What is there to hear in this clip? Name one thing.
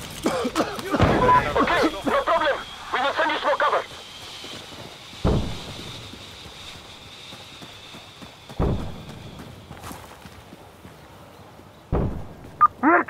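A shotgun fires loud single blasts, a few seconds apart.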